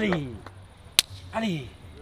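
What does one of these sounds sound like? Two hands slap together in a handshake.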